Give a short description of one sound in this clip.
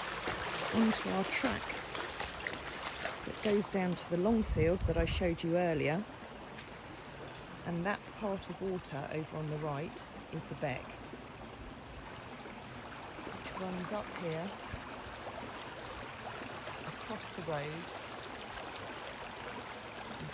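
Floodwater rushes and gurgles steadily over the ground.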